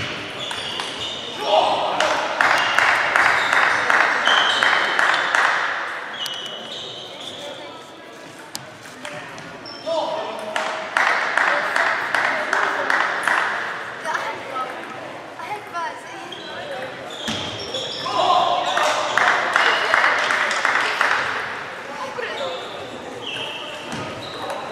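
Table tennis balls click and bounce on tables in a large echoing hall.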